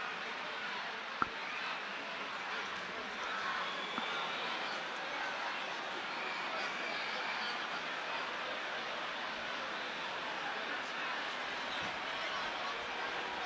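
A large stadium crowd murmurs steadily in the distance.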